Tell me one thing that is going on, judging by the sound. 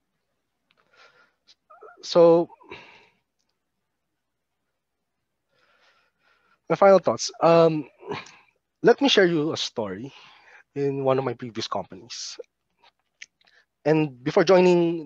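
A man speaks calmly through an online call microphone, in short bursts with pauses.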